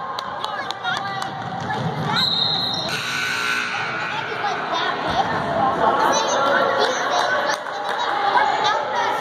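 Spectators chatter and call out in a large echoing gym.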